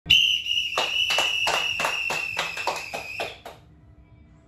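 Two young men clap their hands in a steady rhythm.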